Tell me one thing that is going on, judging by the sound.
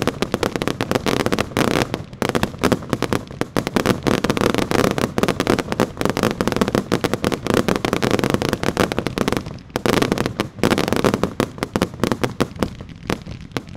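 Fireworks crackle and pop rapidly outdoors.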